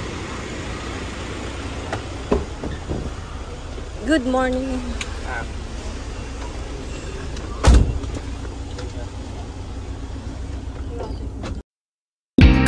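A van engine hums steadily from inside the van.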